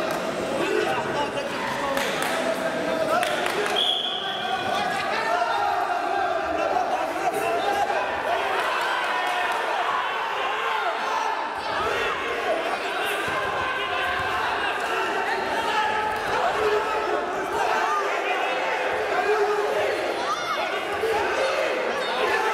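A crowd of spectators chatters and calls out throughout a large echoing hall.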